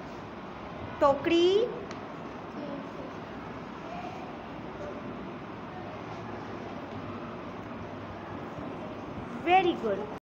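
A young boy speaks briefly in a high voice, close by.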